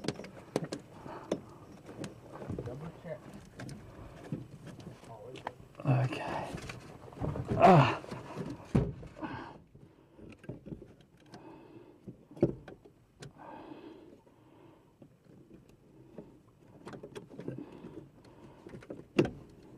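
Metal tools click and scrape against engine parts.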